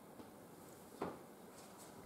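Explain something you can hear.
A small plastic piece clicks as it is set down on a table.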